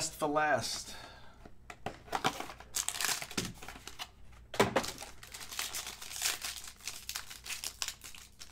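Foil wrapping crinkles and tears as it is pulled open by hand.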